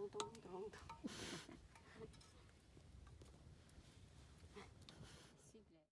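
A wood fire crackles softly.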